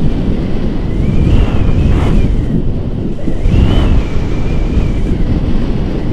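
A young man talks loudly over the wind.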